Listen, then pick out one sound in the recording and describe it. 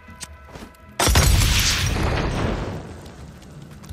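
A second explosion bursts loudly.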